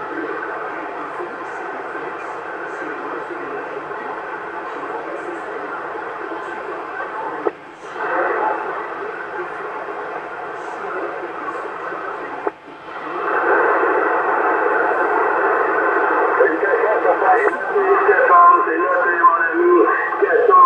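A radio receiver hisses with a steady rush of static.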